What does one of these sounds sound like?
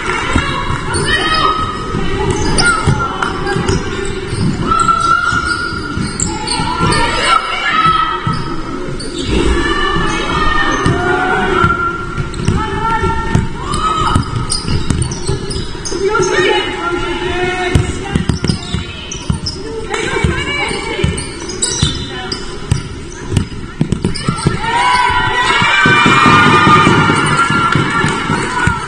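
A basketball bounces on a wooden court in an echoing hall.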